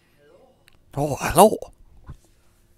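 A man speaks briefly in a low voice, close by.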